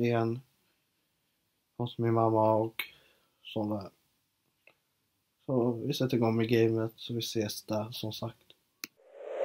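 A young man talks casually and close by, with pauses.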